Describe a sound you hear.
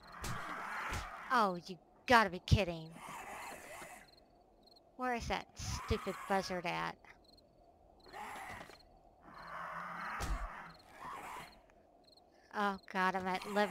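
A large creature screeches in wavering cries.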